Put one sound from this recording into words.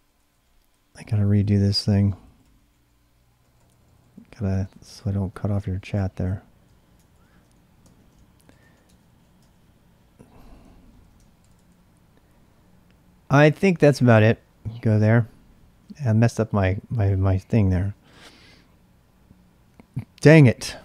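A man speaks calmly and close into a microphone, in short bursts with pauses.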